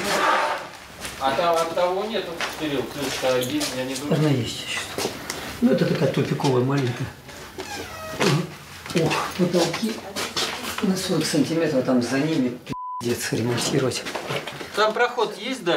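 A man speaks quietly and calmly close by.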